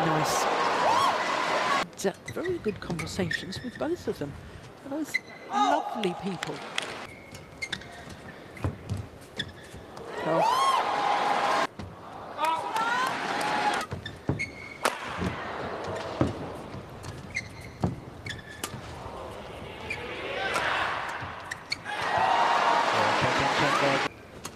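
A large crowd cheers and claps loudly in a big hall.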